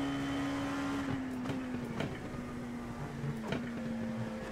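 A racing car engine winds down as the driver shifts down through the gears.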